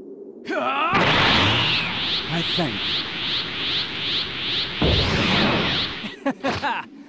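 Energy beams crackle and whoosh rapidly.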